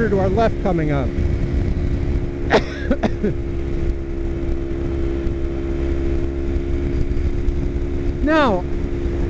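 A motorcycle engine hums steadily at cruising speed.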